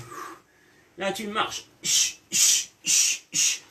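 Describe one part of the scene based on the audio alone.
A man breathes out hard in quick, even bursts.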